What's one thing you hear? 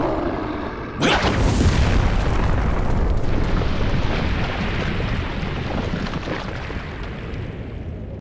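Water rushes down in a steady roar.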